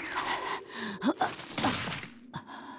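A body thuds onto the ground.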